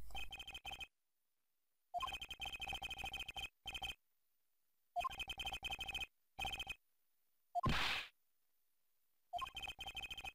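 Quick electronic blips chirp in rapid bursts.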